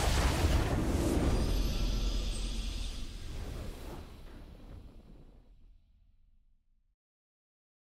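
A triumphant game victory fanfare plays and slowly fades away.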